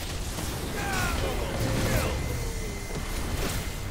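An energy beam crackles and roars.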